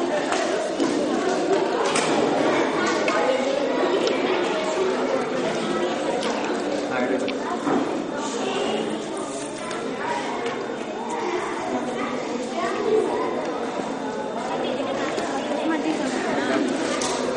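A crowd of children chatters all around.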